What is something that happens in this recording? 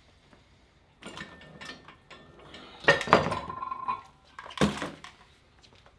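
Metal gear clanks and rattles close by.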